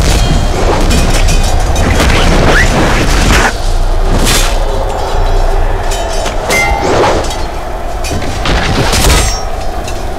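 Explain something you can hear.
A large crowd of warriors shouts and charges.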